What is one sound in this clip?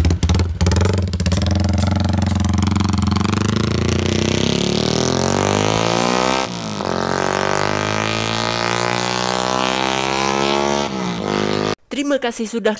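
A motorcycle accelerates away, its engine rising in pitch through the gears and fading into the distance.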